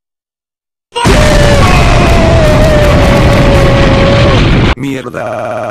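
A loud explosion bursts and roars.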